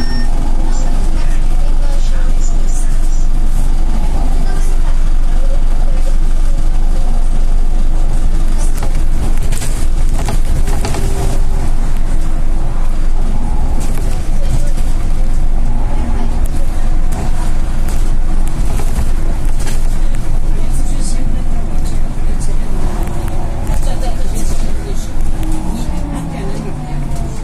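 The bus body rattles and clatters over the road.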